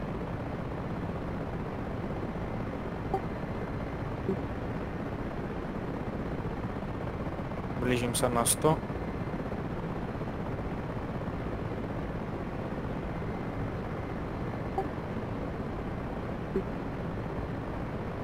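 A helicopter's engine and rotor drone steadily from close by.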